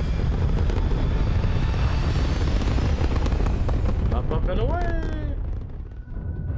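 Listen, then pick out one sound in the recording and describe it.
A spaceship's engines rush overhead in the sky.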